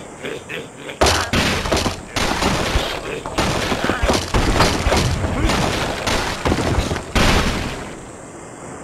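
Blocks crash and clatter as a tower collapses.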